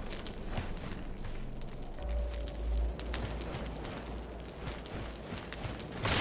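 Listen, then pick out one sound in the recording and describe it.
Footsteps crunch on dry dirt.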